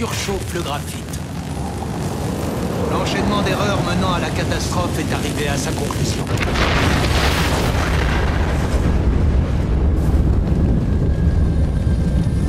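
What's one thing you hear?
Fire roars loudly.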